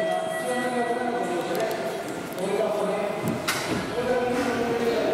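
An escalator hums and whirs steadily.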